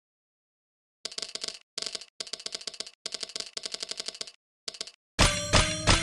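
Quick clicking chimes rattle in rapid bursts.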